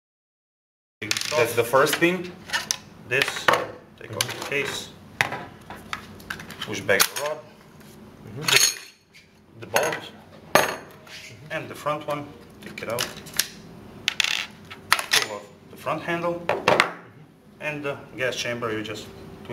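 Metal rifle parts click and clack as they are taken apart.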